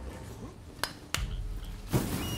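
A sword clangs against metal with a sharp ring.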